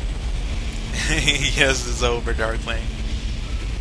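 A young man speaks briefly into a microphone with animation.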